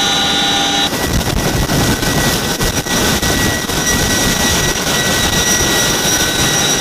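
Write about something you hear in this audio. Helicopter rotors thump loudly outdoors in strong wind.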